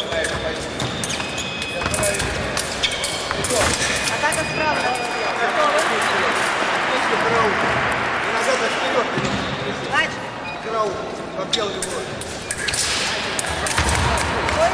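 Fencing blades clash and click.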